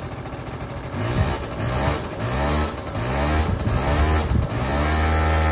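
A small engine sputters and cranks as it is pull-started.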